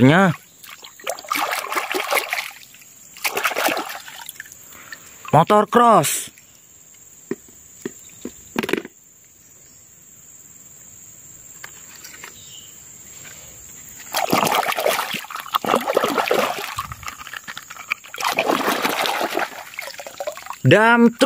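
Hands swish and splash a small toy through muddy water.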